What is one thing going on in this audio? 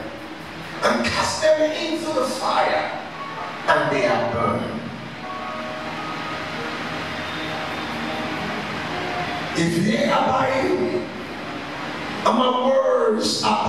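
A man preaches with passion into a microphone, his voice echoing through a loudspeaker.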